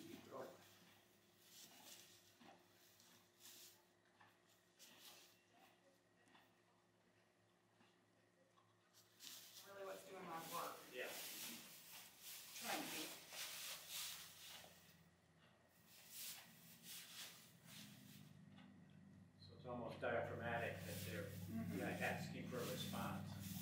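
Hooves rustle and shuffle in straw.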